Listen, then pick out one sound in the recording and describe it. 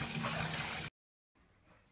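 Water sloshes in a bathtub.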